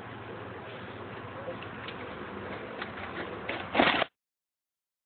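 A bicycle lands hard with a thud.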